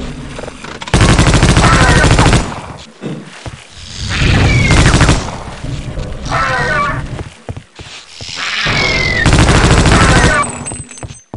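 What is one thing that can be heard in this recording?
A machine gun fires in loud rapid bursts.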